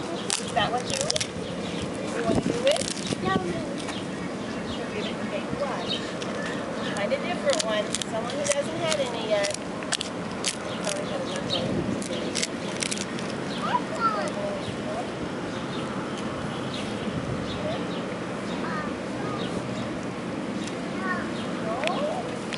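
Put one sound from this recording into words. A goat chews and crunches on a dry piece of food close by.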